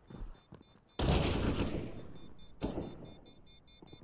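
A sniper rifle fires a loud, sharp shot.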